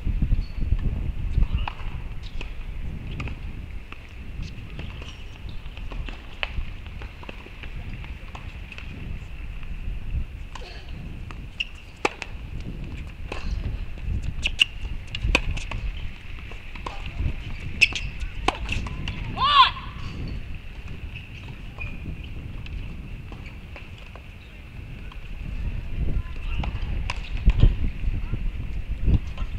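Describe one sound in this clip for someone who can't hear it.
A tennis ball is struck with a racket with sharp pops.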